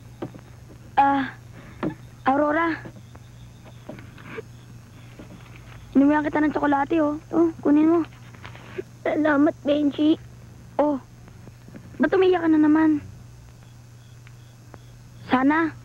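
A boy speaks softly, close by.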